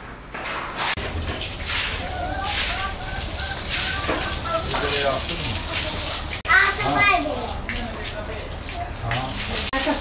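Water sprays from a garden hose onto a wet concrete floor.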